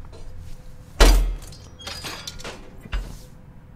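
A metal wrench clanks against a metal clamp.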